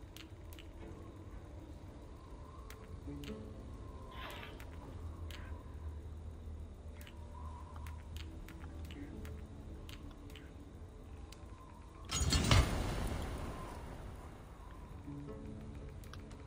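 Soft menu clicks tick as a list scrolls.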